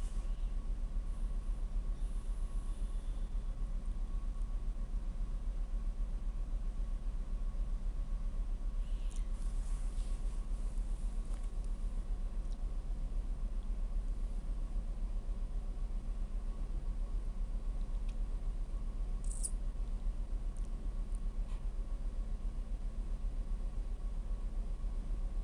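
Heavy machinery hums steadily in a large hall.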